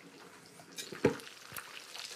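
Metal tongs clank against a frying pan.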